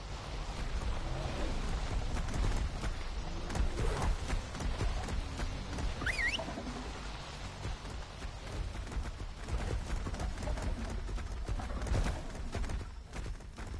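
Footsteps thud on dirt as a character runs.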